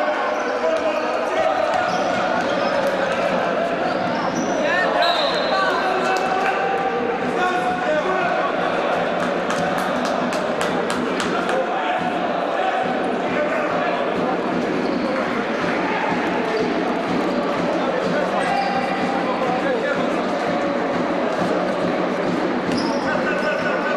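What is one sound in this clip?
A crowd of spectators chatters and calls out throughout a large echoing hall.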